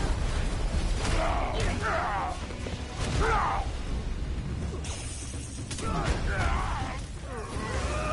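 Heavy metal blows clang and thud in a fight.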